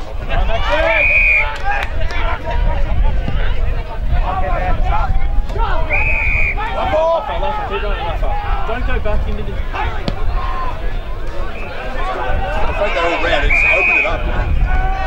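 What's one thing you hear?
A referee's whistle blows short, sharp blasts.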